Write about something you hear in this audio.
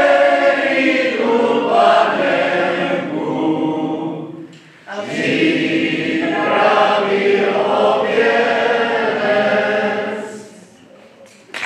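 A brass band plays a slow, sustained tune in a hall.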